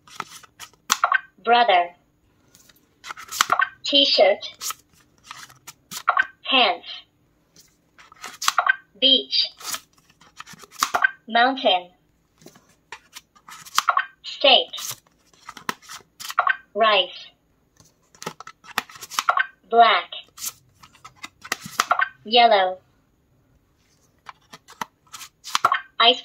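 A talking flash card toy speaks words through a small loudspeaker.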